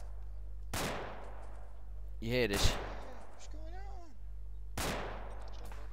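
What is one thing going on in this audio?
Distant gunshots boom and echo across the valley.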